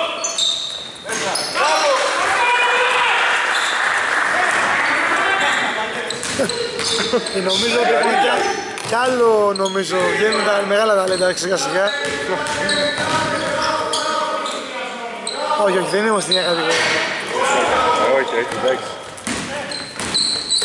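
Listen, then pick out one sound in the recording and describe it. Men shout and call out to each other during play.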